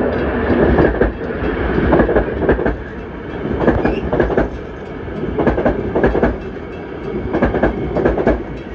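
A train rushes past close by with a loud rumble.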